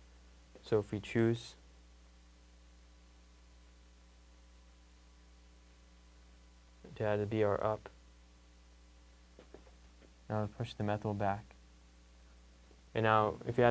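A young man speaks calmly nearby, in short phrases with pauses.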